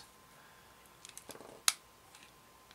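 Small cutters snip through plastic with sharp clicks.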